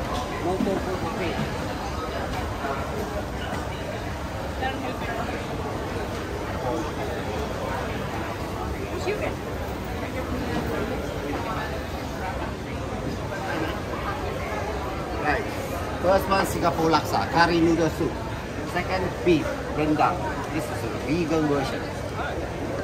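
A crowd chatters steadily outdoors.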